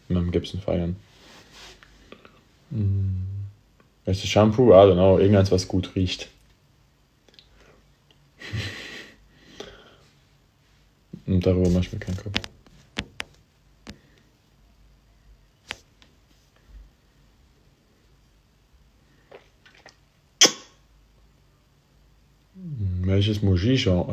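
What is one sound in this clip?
A young man talks casually and close up, in bursts with pauses.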